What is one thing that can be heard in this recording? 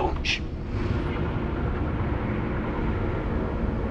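A large hangar door slides open.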